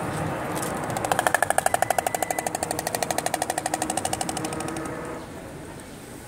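A stork clatters its bill in a fast, rattling burst.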